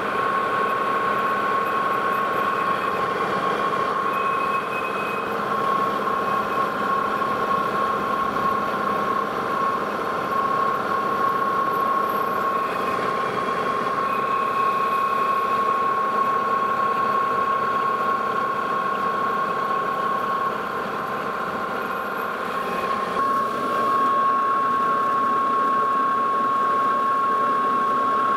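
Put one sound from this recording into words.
A metal lathe motor hums and whines steadily.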